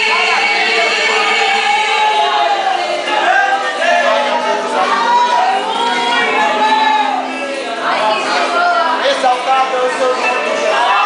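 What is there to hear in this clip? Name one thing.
A group of people sings together.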